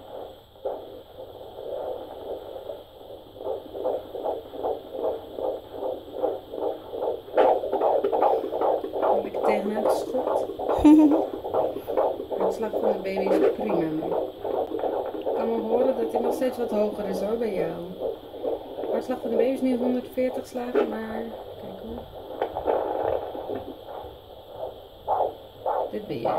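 A fetal heart monitor's speaker gives out a fast, steady whooshing heartbeat.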